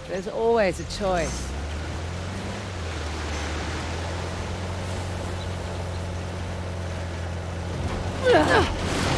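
A jeep engine rumbles steadily as it drives over rough ground.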